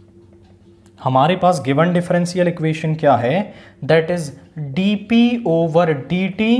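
A man speaks clearly and steadily, close by, as if explaining.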